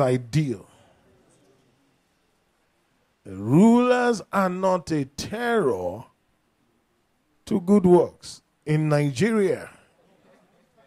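A man preaches loudly in short, forceful bursts, with long pauses.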